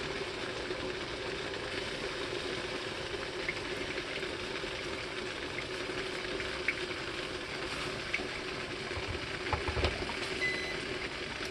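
Coffee drips and trickles steadily into a glass pot.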